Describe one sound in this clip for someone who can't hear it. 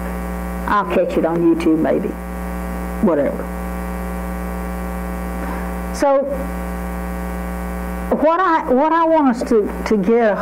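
An elderly woman speaks calmly through a microphone, in bursts with pauses.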